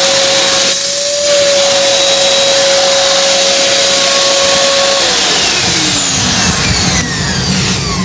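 A small handheld vacuum cleaner whines steadily, then winds down and stops.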